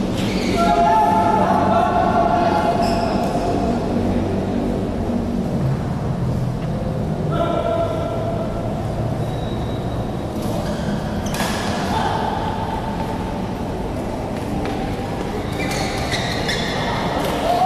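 People chatter in the background of an echoing hall.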